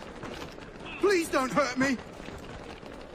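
A man pleads fearfully, close by.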